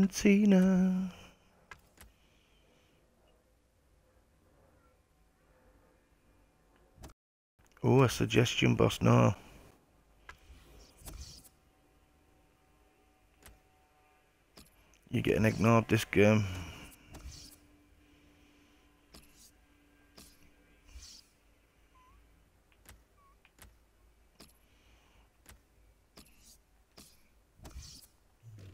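Short interface clicks sound as menu options are selected.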